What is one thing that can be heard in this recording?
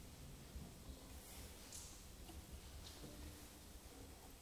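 A string quartet plays softly in an echoing hall.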